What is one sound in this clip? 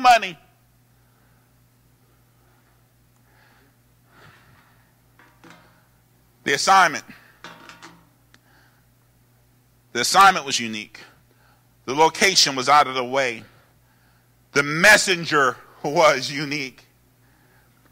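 A man preaches with animation into a microphone, in bursts with long pauses.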